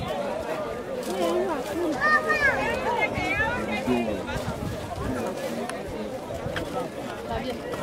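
A crowd of men and women talks and calls out all around, outdoors.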